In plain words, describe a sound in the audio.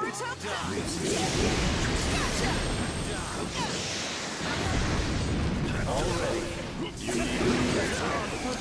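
Energy bursts whoosh and boom.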